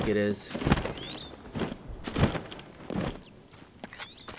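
A game figure lands with a heavy thud on the ground.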